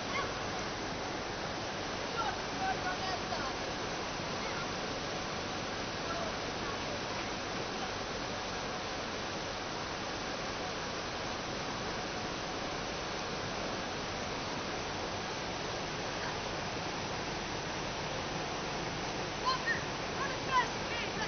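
Water rushes steadily across a flooded road.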